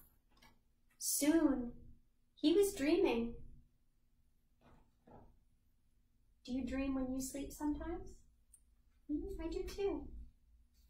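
A young woman reads aloud calmly and expressively, close by.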